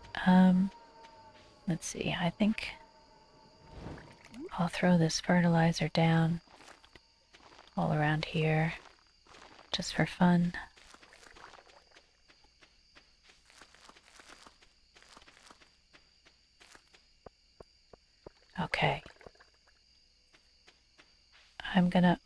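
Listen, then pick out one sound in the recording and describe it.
Soft footsteps patter quickly on dirt.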